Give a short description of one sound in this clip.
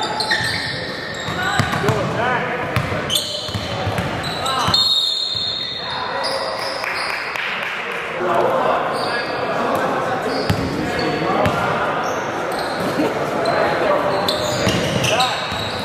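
Young men and boys call out and chatter loudly across the gym.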